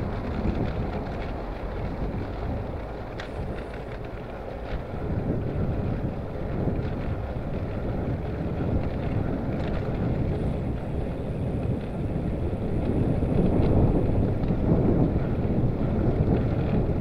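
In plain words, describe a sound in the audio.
Wind rumbles loudly outdoors.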